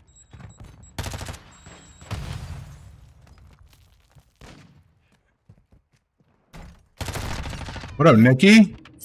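Rapid gunshots crack.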